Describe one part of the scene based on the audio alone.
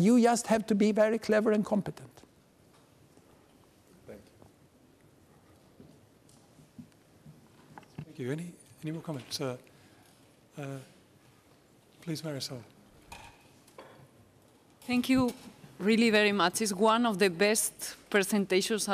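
A middle-aged man speaks calmly and clearly through a microphone.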